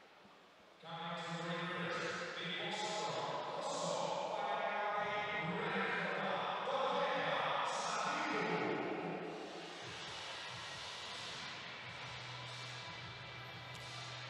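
A crowd cheers in a large echoing arena.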